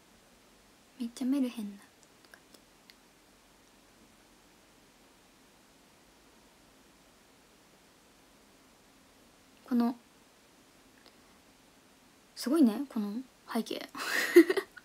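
A young woman speaks softly and briefly, close to the microphone, between pauses.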